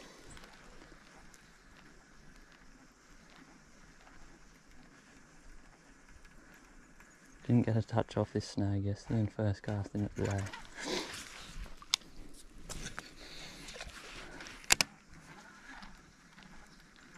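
A fishing reel whirs as it is wound.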